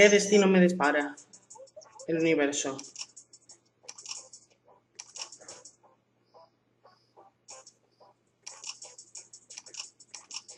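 A handheld game console plays short menu clicks and chimes.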